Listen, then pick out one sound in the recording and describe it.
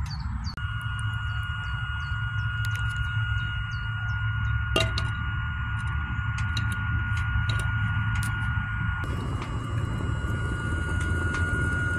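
Flames crackle and roar in a small stove.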